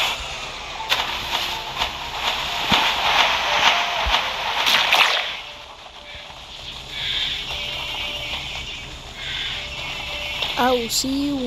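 Game attacks burst with sharp whooshing impacts.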